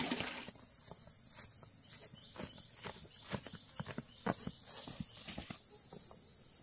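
Rubber boots tread on grass.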